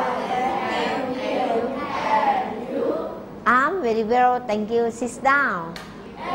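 A group of children chant together in unison close by.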